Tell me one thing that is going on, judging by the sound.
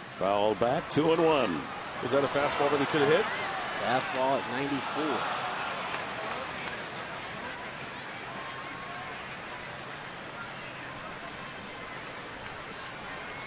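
A stadium crowd murmurs in the open air.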